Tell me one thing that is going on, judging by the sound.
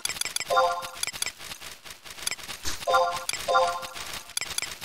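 Short pitched menu chimes sound a few times.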